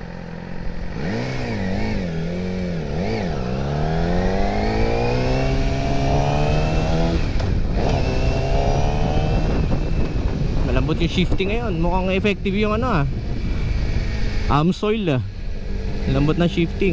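A motorcycle engine revs up and down, rising and falling in pitch as the bike rides along.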